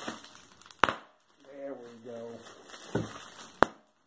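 Plastic wrapping crinkles.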